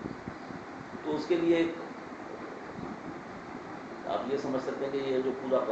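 A middle-aged man speaks calmly nearby, in short bursts.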